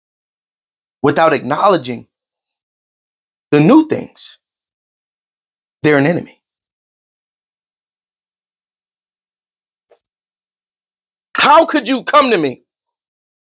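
A man speaks into a close microphone in short, emphatic bursts with pauses.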